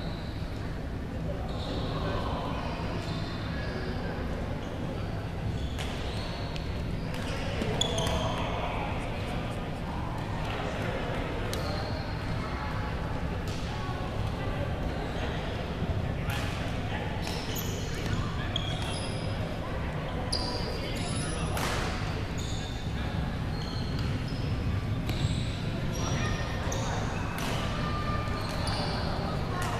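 A murmur of distant voices fills a large echoing hall.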